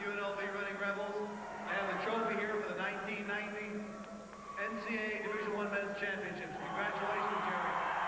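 A middle-aged man speaks into a microphone over a public address system.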